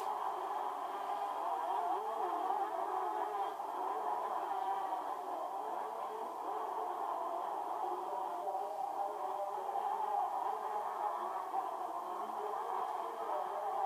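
Motorcycle engines whine and rev through a small television speaker.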